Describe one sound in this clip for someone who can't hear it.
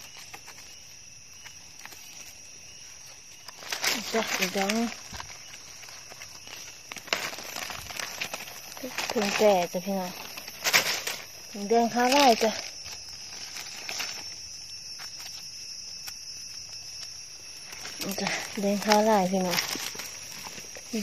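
Dry leaves rustle and crackle as a hand digs through them.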